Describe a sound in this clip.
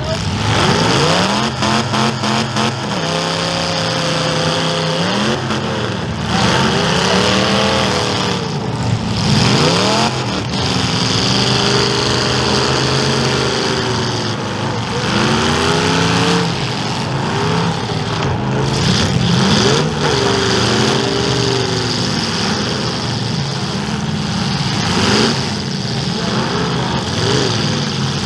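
Car engines roar and rev loudly.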